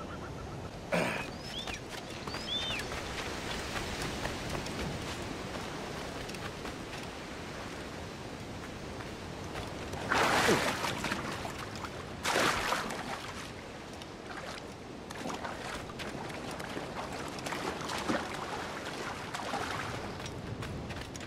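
Footsteps crunch on sand and rock.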